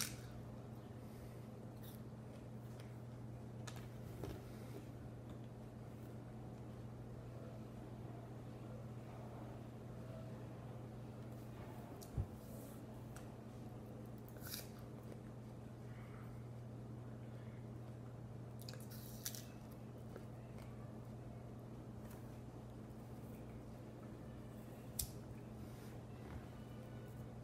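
A teenage boy chews a mouthful of crisp apple.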